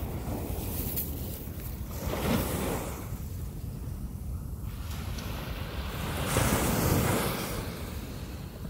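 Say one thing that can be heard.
Small waves break and wash onto the shore.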